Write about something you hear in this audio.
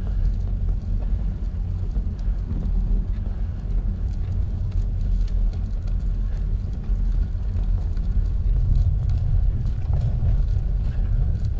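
Tyres hiss softly on wet asphalt.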